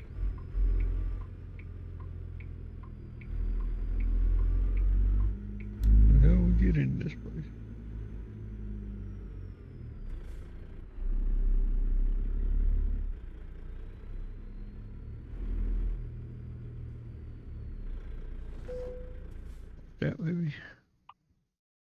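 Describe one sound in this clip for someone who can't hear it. A truck engine rumbles low and steadily, swelling as it speeds up.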